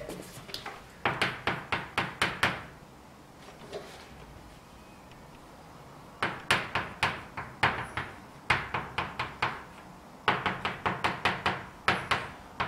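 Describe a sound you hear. Chalk taps and scratches rapidly on a blackboard.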